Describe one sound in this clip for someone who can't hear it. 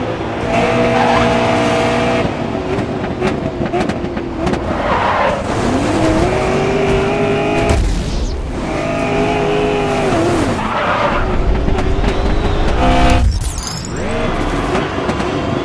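A race car engine roars loudly, its pitch rising and dropping with gear changes.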